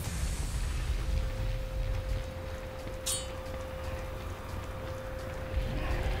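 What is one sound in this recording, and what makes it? A fire roars and crackles nearby.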